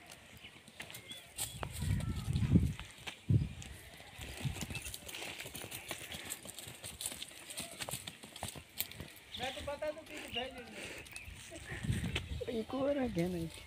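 Donkeys' hooves scuff and thud on dry dirt.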